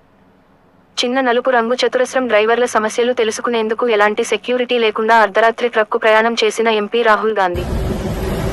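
A young woman reads out the news clearly through a microphone.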